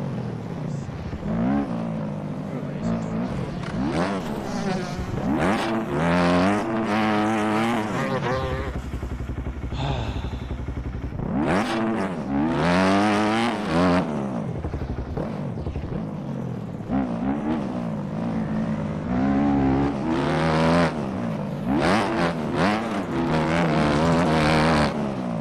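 A motorbike engine revs up and down loudly, rising and falling in pitch as gears change.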